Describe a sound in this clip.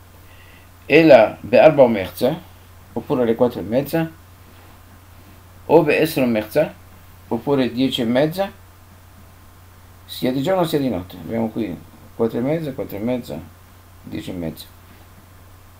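An elderly man speaks calmly and clearly into a nearby microphone, pausing between phrases.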